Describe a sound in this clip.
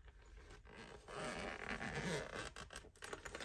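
Hands rub and handle a fabric zip case.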